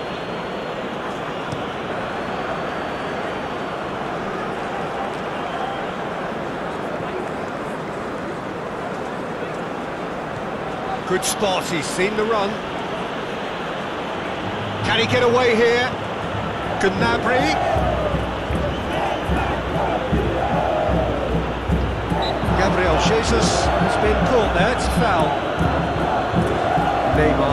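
A large stadium crowd murmurs and roars steadily throughout.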